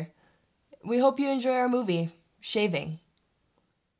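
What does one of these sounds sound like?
A young woman sings a short phrase close by.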